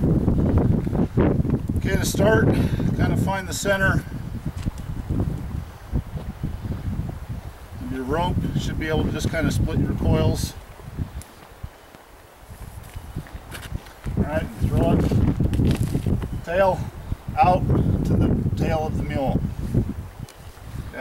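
A rope swishes and rustles as it is coiled.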